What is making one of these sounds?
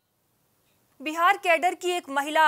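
A young woman speaks clearly into a microphone, reading out news.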